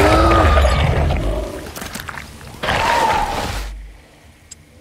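A large creature roars and growls loudly.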